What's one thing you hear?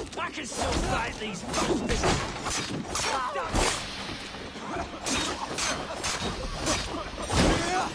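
Blades strike and clash in a close fight.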